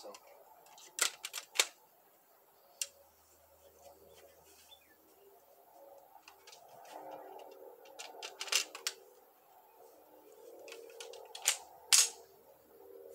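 Metal parts of a handheld device click and clack.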